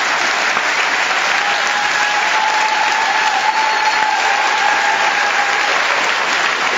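A large children's choir sings a long held note in a large hall.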